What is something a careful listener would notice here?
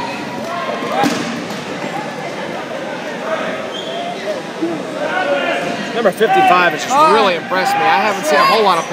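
A crowd of young players chatters and shouts in a large echoing hall.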